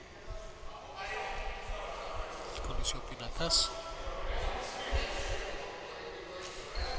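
Young men call out to each other in a large echoing hall.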